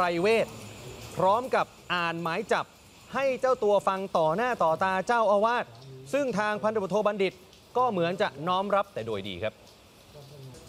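A man speaks steadily into a microphone.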